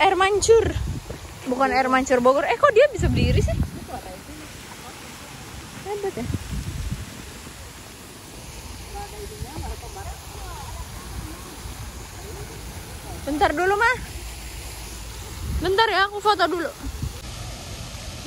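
Fountains splash steadily into a pond.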